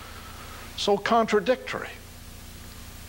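An elderly man speaks briefly into a microphone, heard through a loudspeaker.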